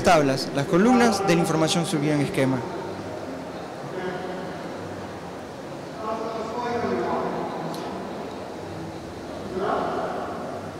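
A young man speaks calmly through a microphone in a large echoing hall.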